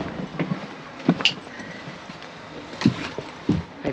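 Footsteps thud on the steps of a coach.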